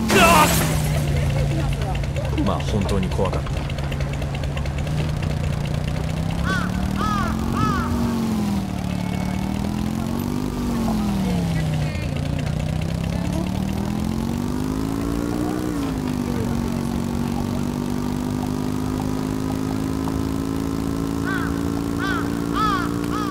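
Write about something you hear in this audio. A small motor scooter engine hums, its pitch rising and falling as it speeds up and slows down.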